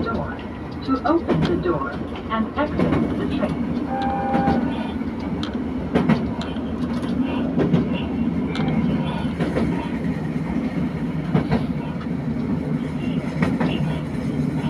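A diesel railcar's engine rumbles while running at speed.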